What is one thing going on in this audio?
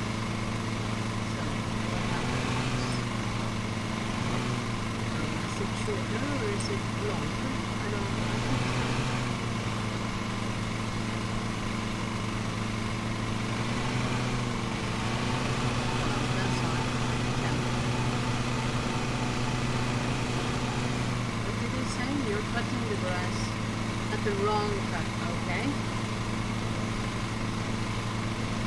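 A small lawn mower engine hums steadily.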